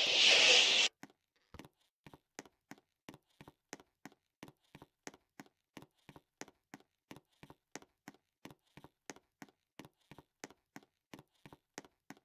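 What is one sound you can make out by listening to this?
Quick footsteps patter steadily on a hard surface.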